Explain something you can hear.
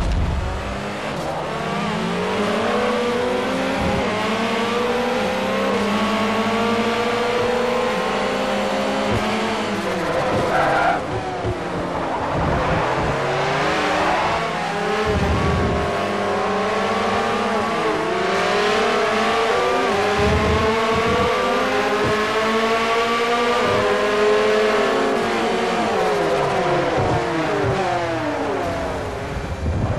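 A racing video game's prototype race car engine screams at full throttle, shifting up through the gears.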